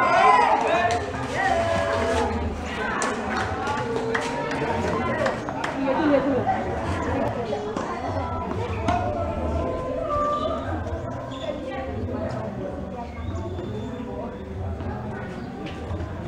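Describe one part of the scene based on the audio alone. Tennis balls pop off rackets in a rally.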